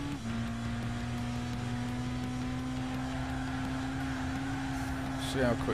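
A car engine drones steadily at high revs, its pitch climbing slowly after a quick gear change.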